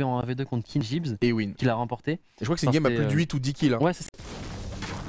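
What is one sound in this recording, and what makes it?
A young man talks with animation into a headset microphone.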